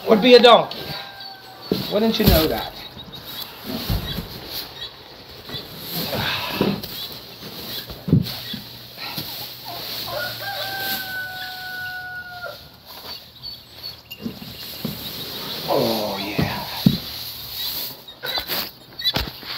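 Dry hay rustles and scrapes as bales are shifted.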